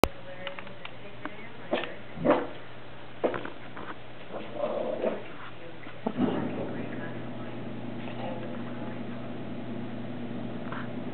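A small dog's paws patter softly on a carpeted floor.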